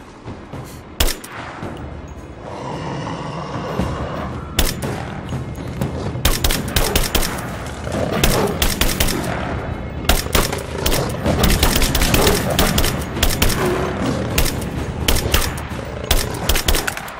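A rifle fires in quick bursts of sharp shots.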